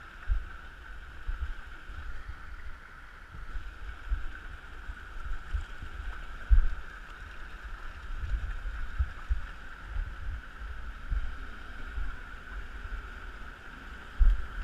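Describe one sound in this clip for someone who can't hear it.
Shallow water flows steadily over rock.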